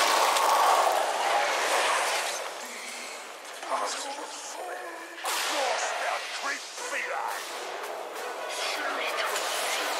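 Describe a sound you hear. Fire spells roar and crackle in a game battle.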